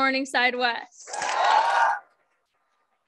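A young woman shrieks with joy.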